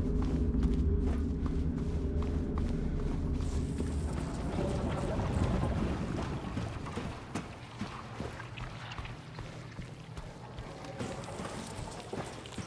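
Footsteps thud slowly on a hard floor.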